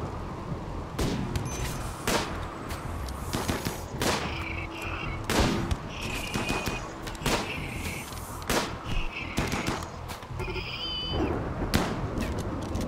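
Gunshots crack in uneven bursts.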